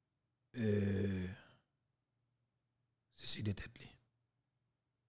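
A man speaks in short bursts, close to a microphone.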